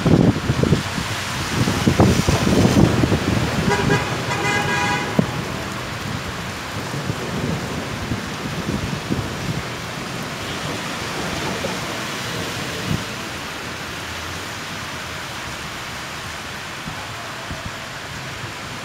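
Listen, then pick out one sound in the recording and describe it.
Rain patters steadily on wet pavement.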